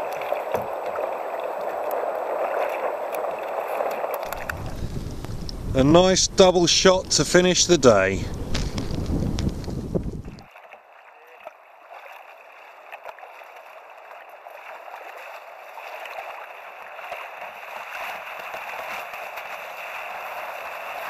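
Water splashes and laps against a kayak.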